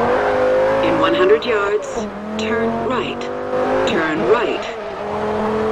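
Car tyres screech while cornering.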